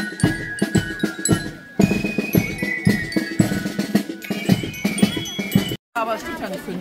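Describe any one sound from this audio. A marching band plays brass instruments outdoors.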